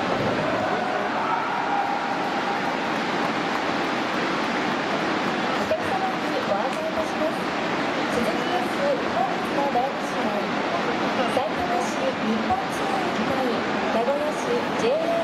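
A large crowd of fans sings and chants together in rhythm.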